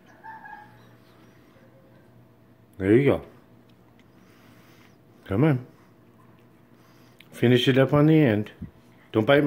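A cat nibbles and chews on an ear of corn.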